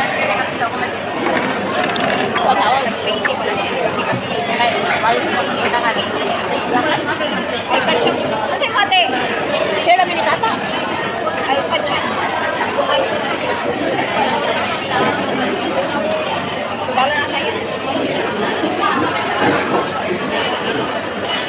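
A crowd of people chatters in the background of a large, busy hall.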